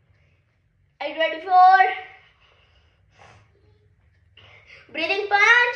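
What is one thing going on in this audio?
A young boy speaks close by.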